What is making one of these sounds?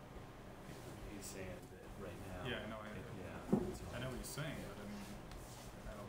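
A middle-aged man speaks calmly in a room with a slight echo.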